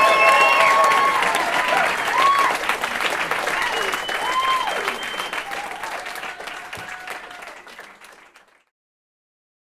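An audience claps and cheers, then fades out.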